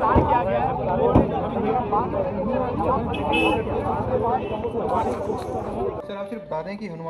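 A crowd of people talk loudly outdoors.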